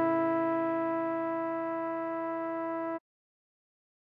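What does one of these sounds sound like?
A trombone holds a long note.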